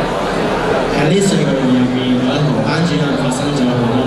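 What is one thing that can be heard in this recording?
A young man talks calmly into a microphone over loudspeakers.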